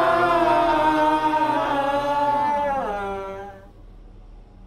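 A young man sings a long, wavering note close by that slides down and fades out.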